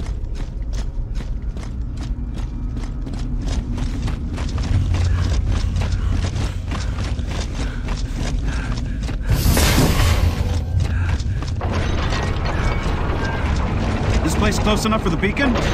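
Heavy armoured footsteps thud rhythmically on stone.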